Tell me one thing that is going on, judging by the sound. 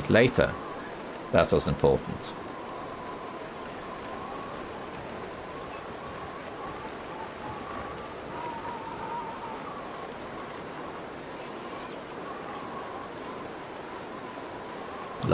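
Wind blows steadily over open snow.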